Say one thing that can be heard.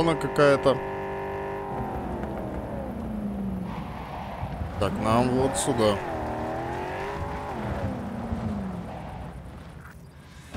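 A car engine hums and revs while driving.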